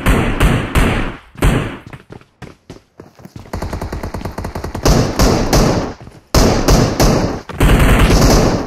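An automatic rifle fires loud bursts of gunshots.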